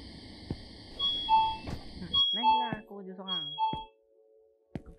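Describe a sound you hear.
An electronic door chime plays a short tune.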